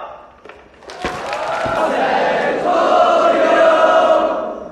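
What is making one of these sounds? A crowd of men sings together in a large room.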